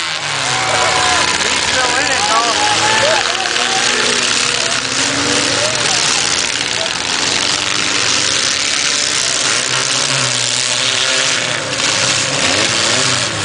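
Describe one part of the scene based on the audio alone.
Car engines roar and rev.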